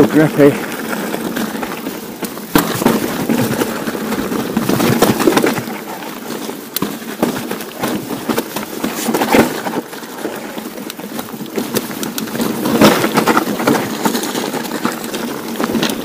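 Bicycle tyres crunch and rattle over a rough rocky trail.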